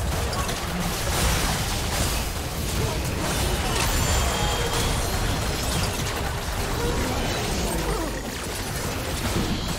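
Video game spell effects crackle and burst in a hectic battle.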